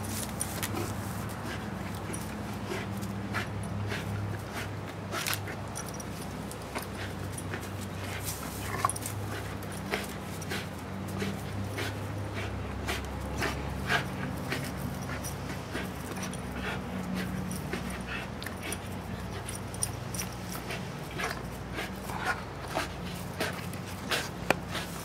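Leaves and branches rustle and shake as a rope is yanked.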